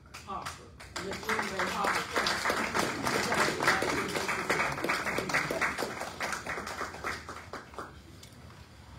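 A group of people applaud with steady clapping.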